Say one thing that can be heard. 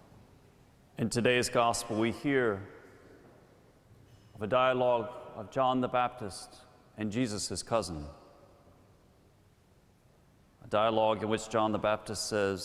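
A man speaks calmly into a microphone in a large echoing hall.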